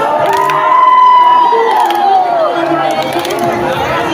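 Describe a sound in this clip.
Audience members clap along.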